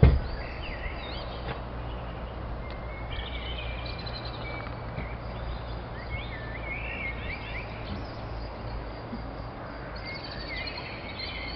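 Wind blows softly outdoors.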